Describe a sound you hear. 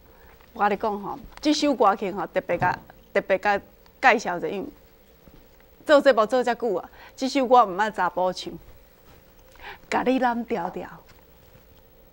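A middle-aged woman speaks cheerfully and with animation into a microphone.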